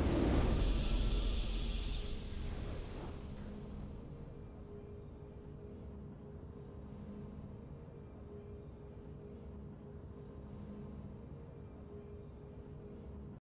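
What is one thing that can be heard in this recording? A triumphant fanfare swells and then fades to a quiet hum.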